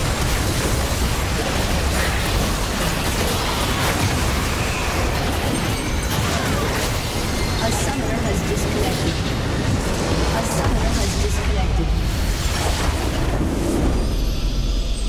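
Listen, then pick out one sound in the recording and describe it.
Game spells and attacks crash and blast in a fierce battle.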